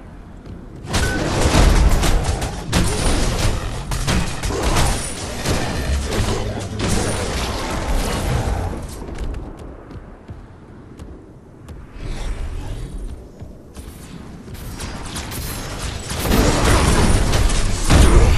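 Sharp hits and clanks strike rapidly during combat.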